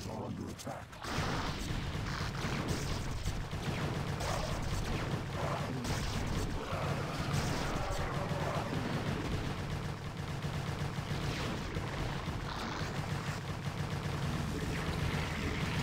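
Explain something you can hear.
Buildings burn with a crackling roar.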